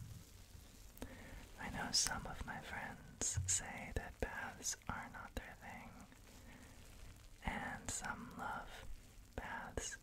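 A young man whispers softly, very close to a microphone.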